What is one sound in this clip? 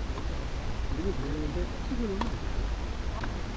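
Young women talk briefly between points.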